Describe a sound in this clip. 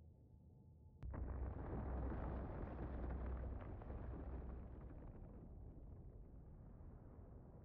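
A huge explosion booms and rumbles, slowly fading.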